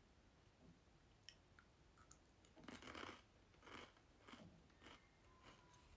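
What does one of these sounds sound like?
A young woman crunches on a snack close by.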